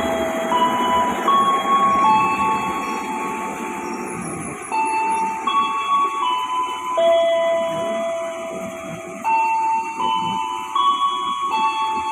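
An electric train rumbles along the tracks.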